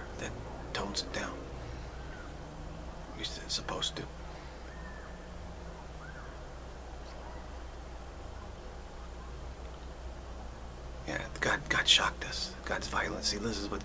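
A middle-aged man speaks calmly and close to a microphone, with pauses.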